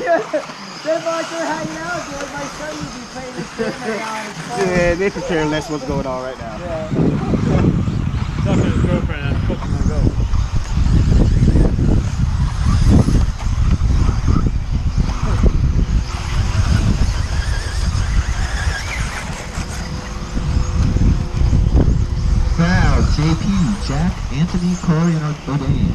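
Small remote-control cars whine as they race over a dirt track.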